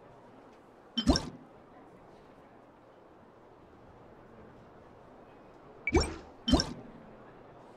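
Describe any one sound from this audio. A short game menu sound plays each time a card panel opens or closes.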